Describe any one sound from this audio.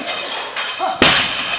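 A heavy barbell crashes down onto the floor.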